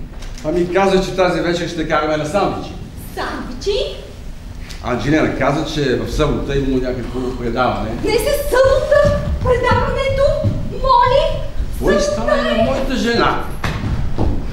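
A woman speaks with feeling through a microphone in a large hall.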